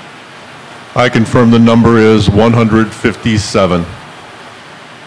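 An older man speaks calmly into a microphone over loudspeakers in a large room.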